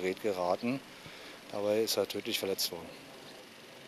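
A man talks nearby in a calm voice.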